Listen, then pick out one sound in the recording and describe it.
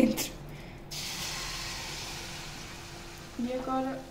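Beaten egg pours into a hot pan and sizzles.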